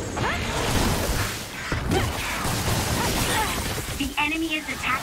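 Combat effects crash and burst loudly.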